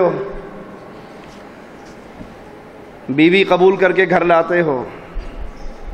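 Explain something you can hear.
A man speaks through a microphone and loudspeakers in a slow, drawn-out preaching voice.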